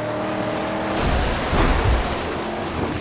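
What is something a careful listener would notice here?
A car body thumps hard as it lands on rough ground.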